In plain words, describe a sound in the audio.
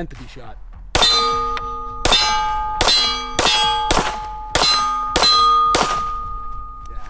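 A pistol fires several sharp shots outdoors, each ringing with a metallic ping.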